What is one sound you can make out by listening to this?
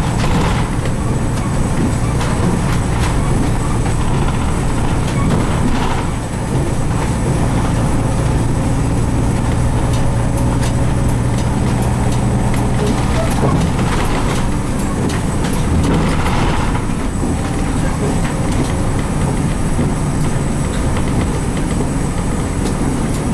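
A bus engine hums steadily from inside the bus as it drives along.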